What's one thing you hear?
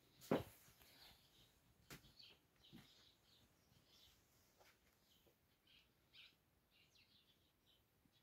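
Fabric rustles softly as cloth is handled.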